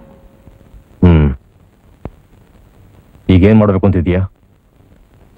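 A man speaks quietly and earnestly close by.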